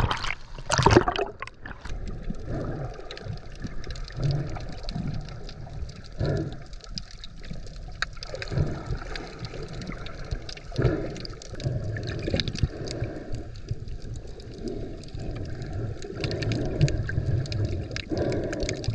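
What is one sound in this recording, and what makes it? Water surges and rumbles, heard muffled from underwater.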